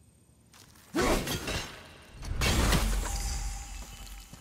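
An axe strikes a hard stone object with a sharp crack.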